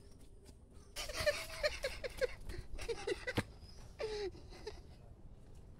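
An elderly man laughs heartily close by.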